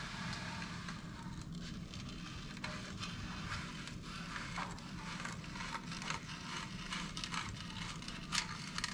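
A saw blade crackles and ticks as it cuts.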